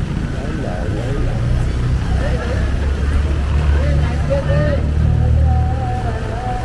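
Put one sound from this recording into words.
A motor tricycle engine rumbles close by.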